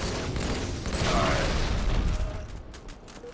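A loud blast booms and rumbles.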